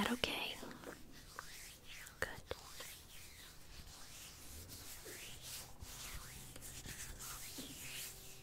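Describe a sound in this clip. A woman whispers softly and closely into a microphone.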